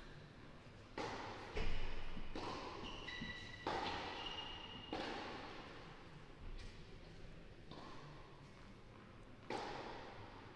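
A tennis ball bounces repeatedly on a hard court in a large echoing hall.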